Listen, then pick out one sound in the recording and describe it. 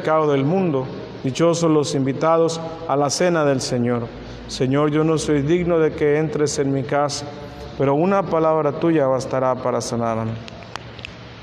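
A man chants loudly through a microphone in an echoing hall.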